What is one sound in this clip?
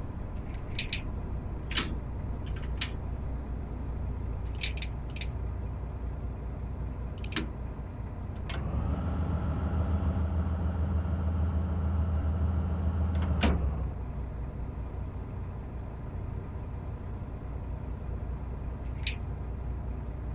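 A train rumbles slowly along the rails and comes to a stop.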